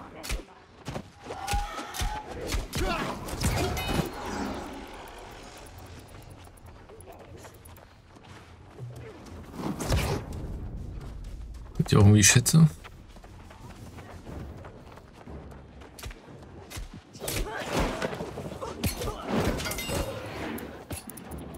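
Sword blows clash and strike in a fight.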